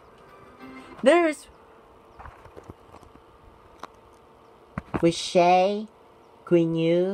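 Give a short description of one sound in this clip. Singing plays through a small computer speaker.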